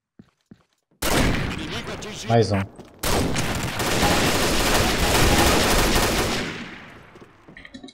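Gunshots blast in rapid bursts.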